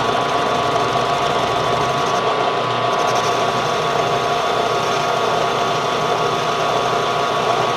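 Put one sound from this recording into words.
A metal lathe hums steadily as it spins.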